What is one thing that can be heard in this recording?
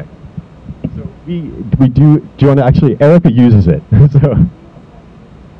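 A young man speaks into a microphone, heard through a loudspeaker.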